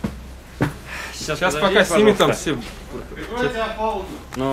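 A man speaks nearby with animation.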